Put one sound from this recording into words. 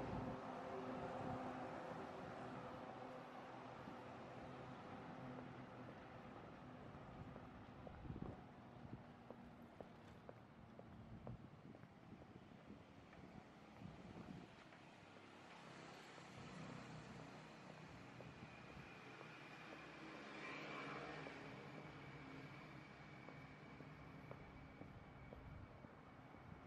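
Traffic hums along a city street at night.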